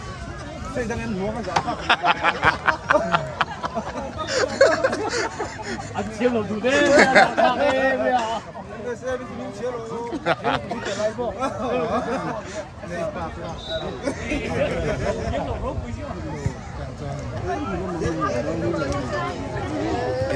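A crowd of men talk and cheer outdoors.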